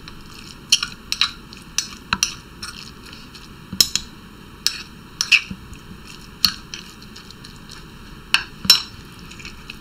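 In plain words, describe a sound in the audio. A spoon clinks against a stone mortar.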